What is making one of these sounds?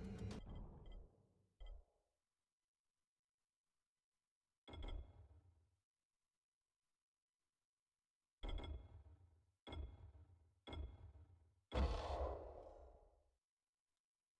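Short game menu sounds thud and chime as options are picked.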